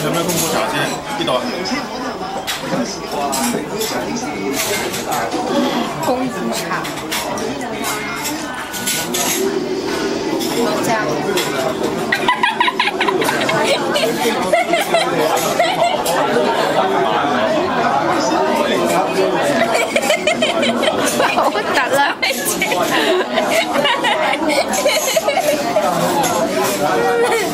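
A crowd of people chatters in a busy room.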